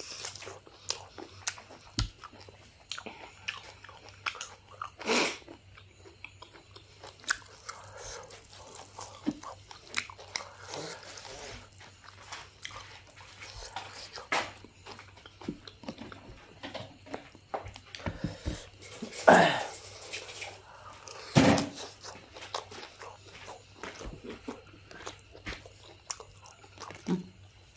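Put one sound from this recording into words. A young man chews and smacks his lips loudly, close to a microphone.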